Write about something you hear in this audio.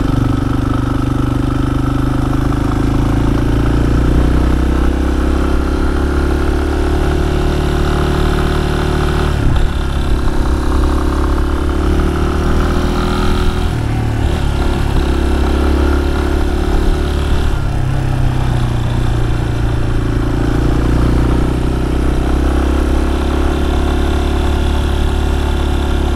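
A motorcycle engine hums steadily, its pitch rising and falling.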